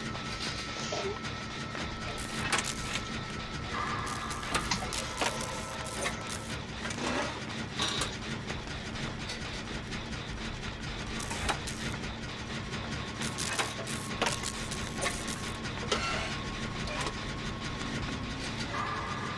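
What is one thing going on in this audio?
A generator engine clanks and rattles.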